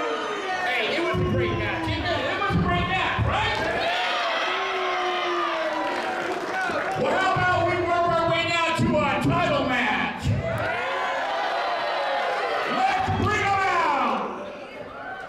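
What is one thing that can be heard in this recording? A man speaks loudly and with animation into a microphone, heard through loudspeakers in a large echoing hall.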